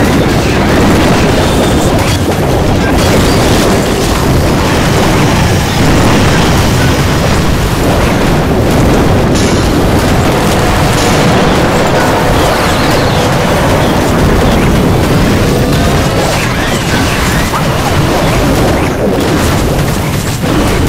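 Game battle sounds of explosions and spells play loudly and without a break.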